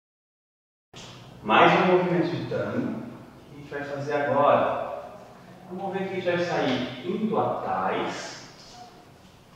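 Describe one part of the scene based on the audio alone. A man speaks calmly, explaining, close by in a room with some echo.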